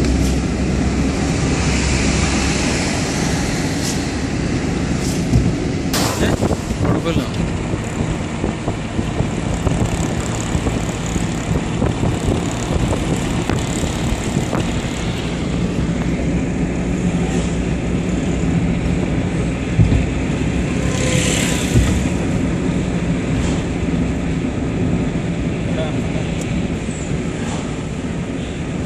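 A car engine hums steadily as tyres roll along a road.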